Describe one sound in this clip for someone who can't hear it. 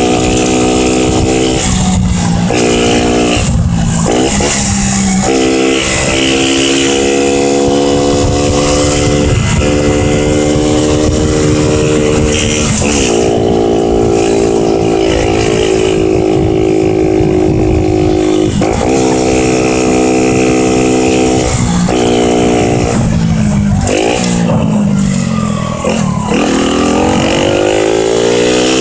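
A motorcycle engine hums up close, rising and falling in pitch as it shifts gears.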